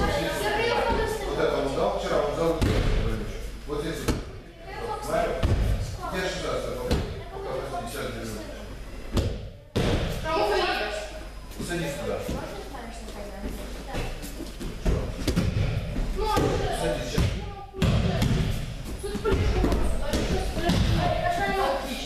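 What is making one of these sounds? Children thump onto a mat as they roll and fall.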